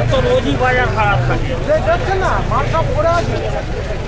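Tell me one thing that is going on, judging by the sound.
People chatter nearby in a busy crowd outdoors.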